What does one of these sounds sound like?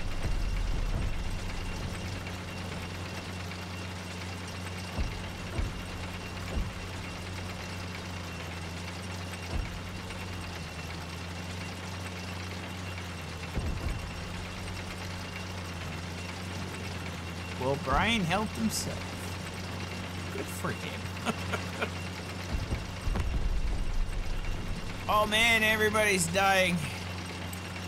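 A heavy vehicle engine rumbles steadily.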